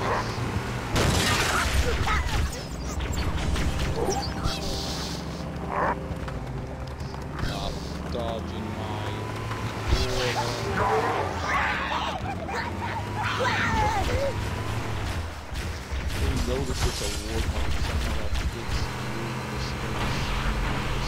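Energy weapons fire in sharp bursts.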